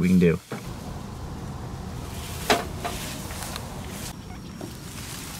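Dry grass and leaves rustle under a hand.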